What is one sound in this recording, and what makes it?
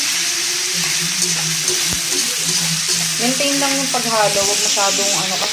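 A spatula scrapes and stirs against a frying pan.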